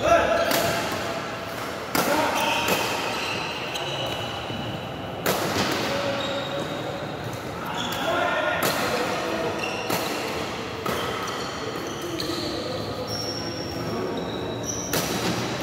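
Rackets strike a shuttlecock with sharp pops in an echoing hall.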